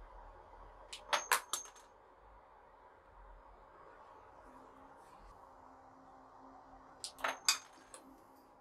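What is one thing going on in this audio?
A small spring-loaded device snaps sharply a few times.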